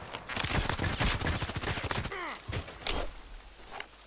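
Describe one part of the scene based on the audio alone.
A pistol is reloaded with sharp metallic clicks.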